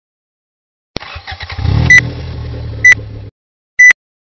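A car engine starts up and revs.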